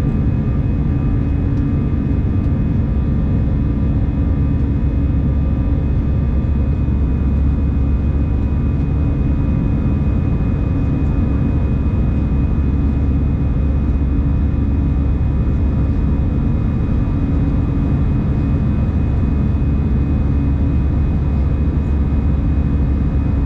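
A jet engine roars steadily and loudly in an airliner cabin.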